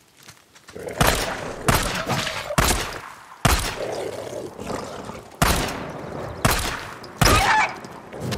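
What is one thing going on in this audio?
Pistol shots fire in quick bursts, each ringing out briefly.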